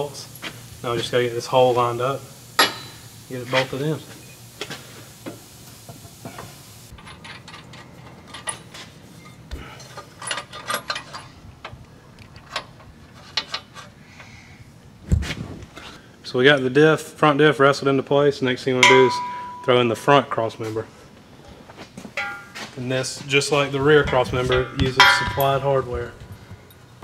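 A man talks calmly and clearly into a microphone.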